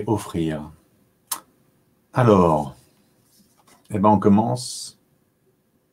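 A young man speaks calmly and close to a microphone, in short phrases.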